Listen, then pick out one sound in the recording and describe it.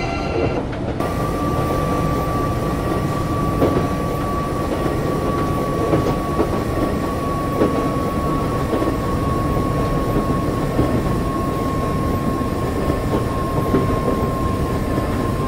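An electric train's traction motors whine.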